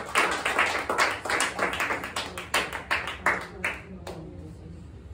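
Several people clap their hands in a quick rhythm.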